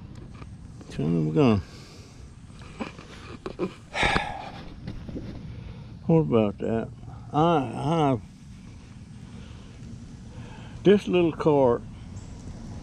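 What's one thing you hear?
A middle-aged man talks casually close by.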